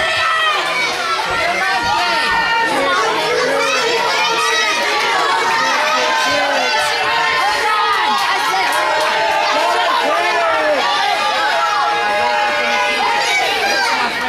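A large crowd chatters and calls out loudly, echoing in a big hall.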